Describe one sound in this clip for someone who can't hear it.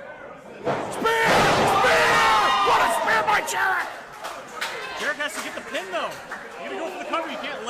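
A man in the crowd shouts with excitement nearby.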